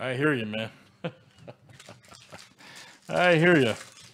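Foil trading card packs crinkle as a hand handles them.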